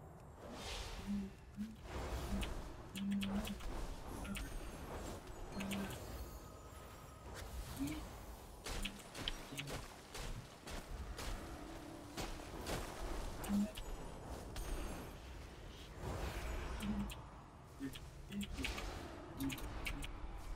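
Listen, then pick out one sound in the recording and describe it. Short tonal game alert chimes sound now and then.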